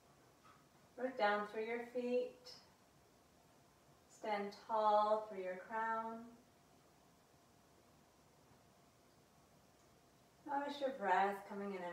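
A young woman speaks calmly and slowly, close to a microphone, with pauses between phrases.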